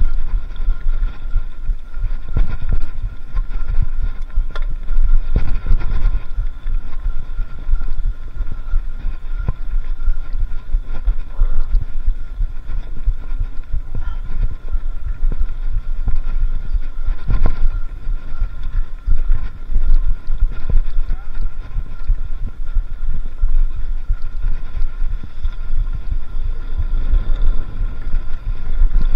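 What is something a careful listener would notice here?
Wind rumbles loudly against a moving microphone.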